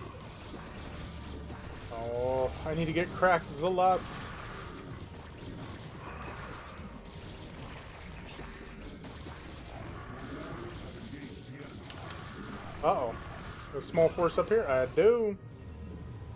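Game weapons zap and crackle in a fast battle.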